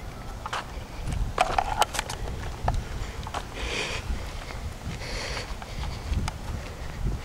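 Footsteps walk on a concrete sidewalk.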